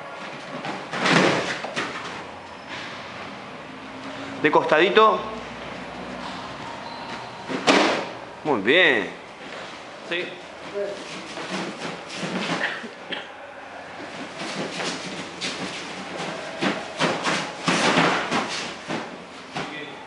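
A body falls and thuds onto a padded mat.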